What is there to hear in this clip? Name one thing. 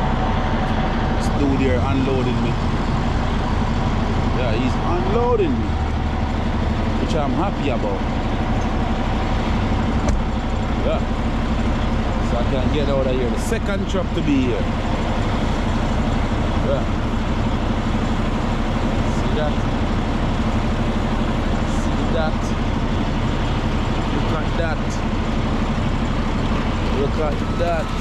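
A diesel engine idles steadily nearby.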